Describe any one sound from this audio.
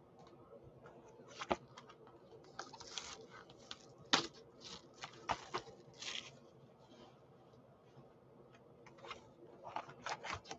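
Hands handle and slide a cardboard box, with rustling and tapping.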